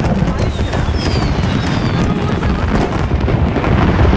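Fireworks whistle and pop in the distance.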